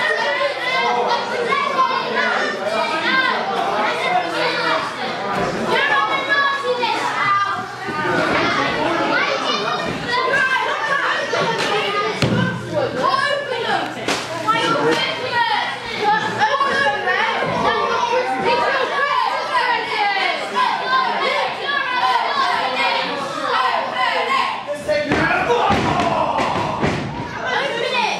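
A crowd of spectators chants and cheers loudly in an echoing hall.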